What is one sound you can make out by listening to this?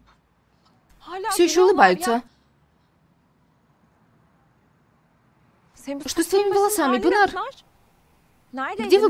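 A young woman speaks calmly close by, in short bursts.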